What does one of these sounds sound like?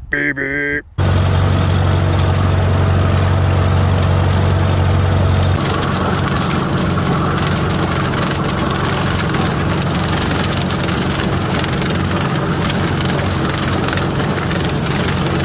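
A tractor engine runs with a steady, low rumble close by.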